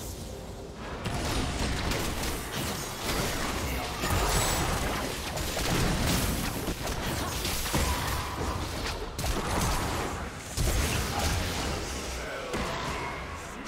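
Game spell effects whoosh and crackle during a battle.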